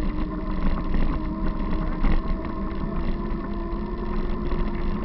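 Bicycle tyres rumble steadily over a bumpy dirt trail.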